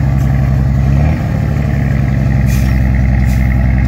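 Sand pours from a tipping truck bed onto the ground.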